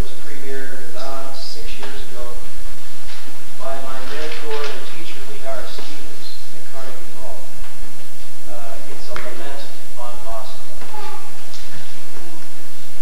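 A man talks calmly to an audience in an echoing hall.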